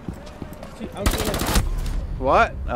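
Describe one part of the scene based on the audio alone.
A burst of gunfire rings out close by.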